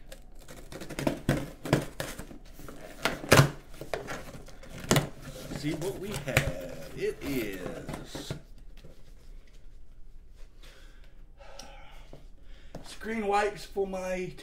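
Cardboard rustles and taps as a box is handled.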